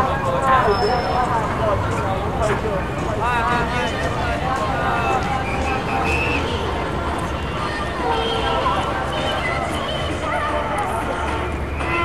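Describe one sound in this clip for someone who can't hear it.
A crowd of people chatters and talks loudly nearby.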